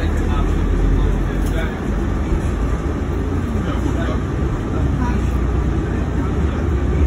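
A bus engine rumbles steadily while riding.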